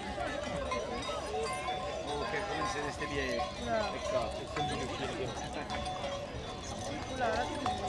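Horse hooves clop on the road.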